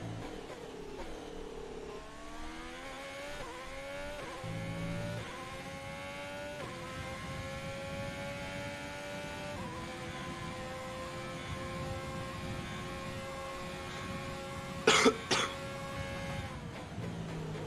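A racing car engine roars at high pitch, rising through the gears and dropping as it slows.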